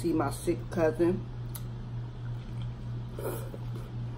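Crisp pizza crust crunches as a woman chews.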